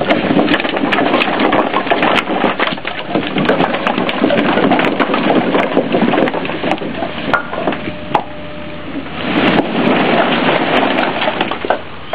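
Split firewood tumbles and clatters out of a trailer onto a pile.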